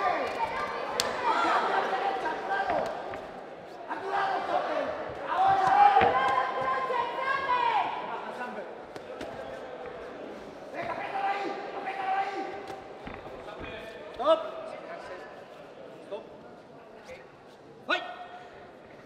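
Gloved punches and kicks land with dull thuds.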